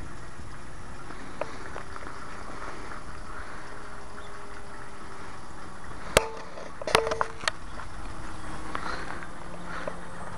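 A small propeller plane drones faintly high overhead.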